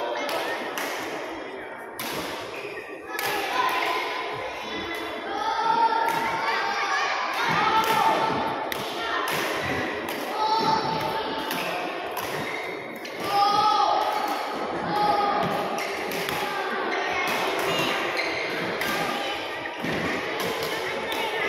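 Badminton rackets hit a shuttlecock with sharp pops in a large echoing hall.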